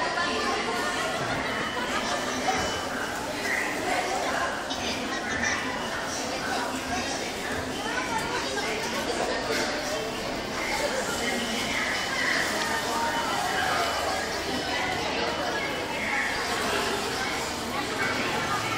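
Children chatter and shout in a large echoing hall.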